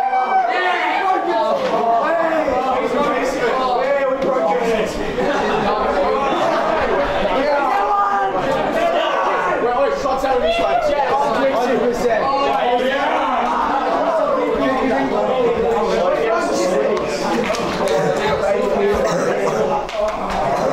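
A group of young men sing and chant loudly together in an echoing room.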